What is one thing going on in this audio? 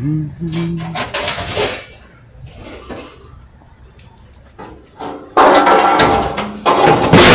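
A trailer rattles and clanks as it rolls over pavement.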